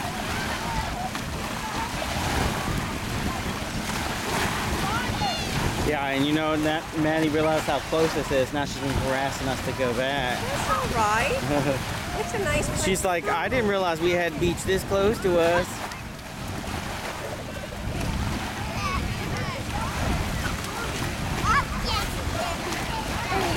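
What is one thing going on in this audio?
Water splashes and laps.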